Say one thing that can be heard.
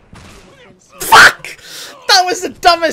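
Heavy gunshots blast close by.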